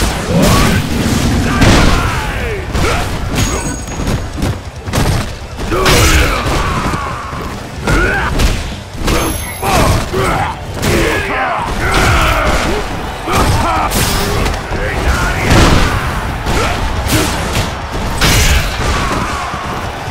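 Punches and throws land with heavy thuds and smacks.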